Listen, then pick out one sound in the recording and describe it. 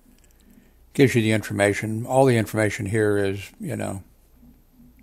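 An older man speaks calmly into a headset microphone, heard up close.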